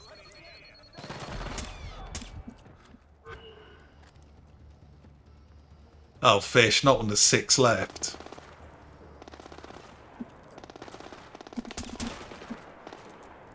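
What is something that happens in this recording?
A silenced rifle fires with a muffled thump.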